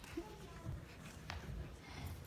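A young girl speaks into a microphone.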